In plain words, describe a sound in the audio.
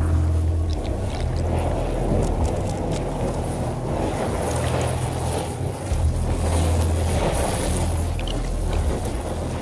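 Flames roar steadily from a burst pipe.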